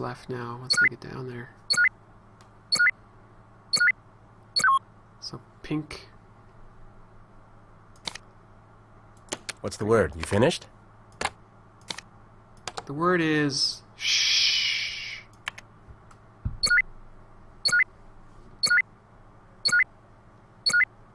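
Short electronic chimes ring out as game pieces snap into place.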